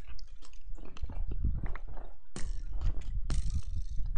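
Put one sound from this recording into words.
Blocks crunch as a shovel digs them out.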